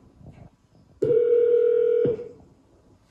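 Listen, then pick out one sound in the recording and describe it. A smart speaker plays a short steady chime.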